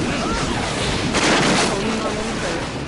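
Wooden beams burst and clatter loudly.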